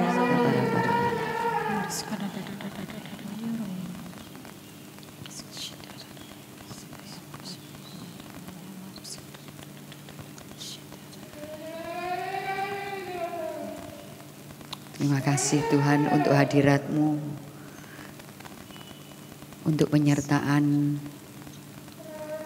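A keyboard plays a sustained chord.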